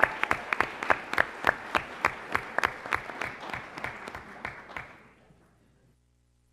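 A crowd applauds loudly in a large room, then the clapping fades away.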